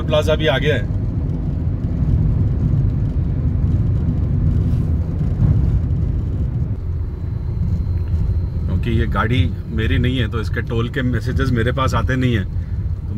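A low, steady road rumble is heard from inside a moving car.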